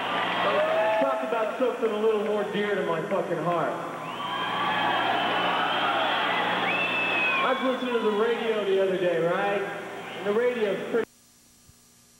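A man sings through loudspeakers.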